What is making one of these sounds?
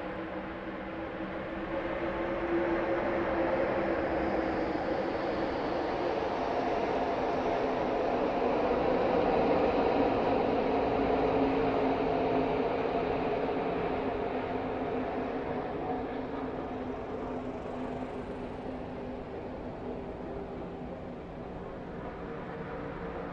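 Many racing trucks roar past at high speed with loud droning engines.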